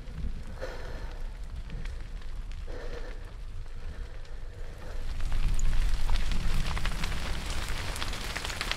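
A fire crackles and hisses.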